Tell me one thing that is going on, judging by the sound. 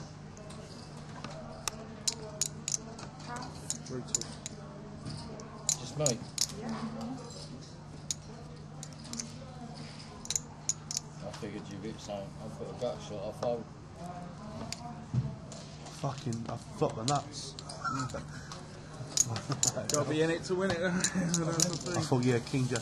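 Poker chips click together.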